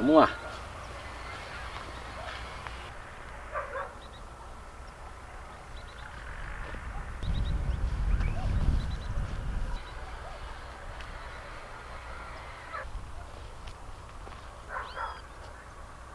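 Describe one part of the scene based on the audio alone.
A hoe scrapes and chops through loose soil.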